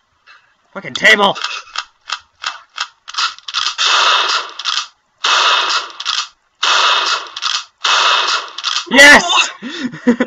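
Shotgun blasts ring out again and again, in quick bursts.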